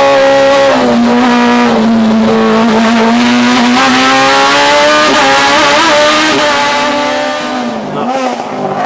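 A rally car's engine roars at high revs inside the cabin.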